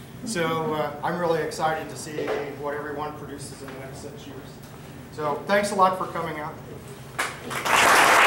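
An elderly man speaks to an audience.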